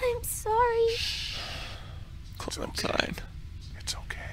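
A man hushes and comforts softly, close by.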